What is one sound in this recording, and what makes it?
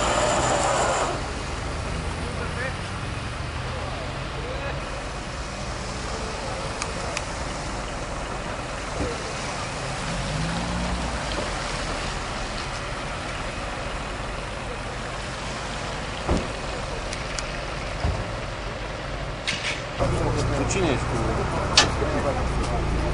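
Traffic rumbles steadily on a wet road outdoors.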